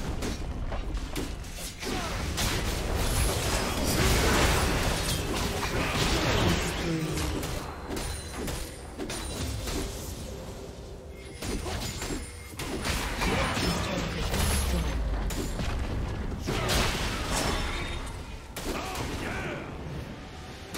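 Spell effects crackle and blast in a video game battle.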